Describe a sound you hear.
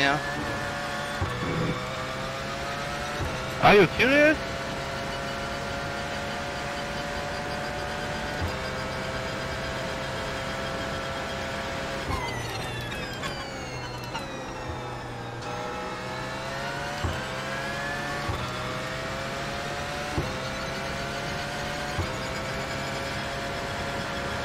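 A race car engine roars, climbing in pitch through quick gear changes.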